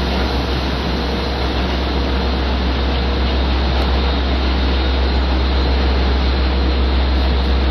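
A train rumbles past in the distance.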